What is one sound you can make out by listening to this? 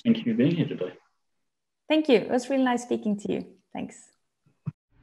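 A young woman talks cheerfully over an online call.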